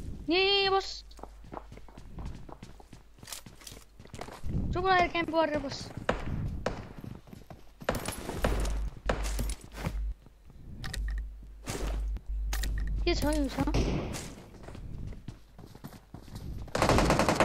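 Footsteps thud quickly on wooden floors and stairs.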